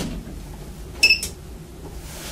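An elevator button beeps when pressed.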